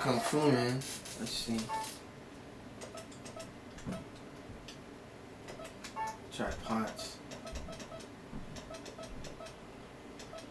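Short electronic beeps sound as a game menu cursor moves.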